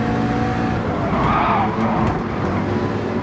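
A racing car engine pops and crackles from its exhaust.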